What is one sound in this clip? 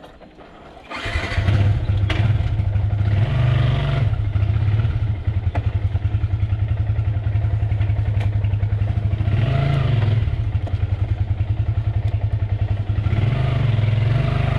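A motorcycle engine starts and runs with a steady low putter.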